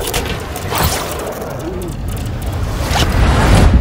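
Wind rushes loudly past a person falling through the air.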